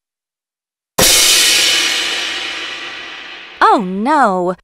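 A cymbal crashes and rings out, slowly fading.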